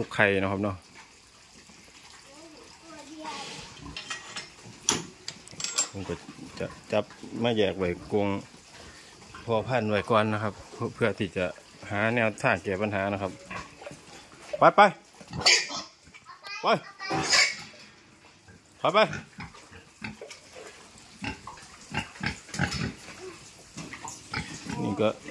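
Pigs grunt and snuffle close by.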